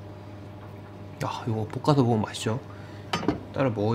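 A knife slices through soft meat and taps a cutting board.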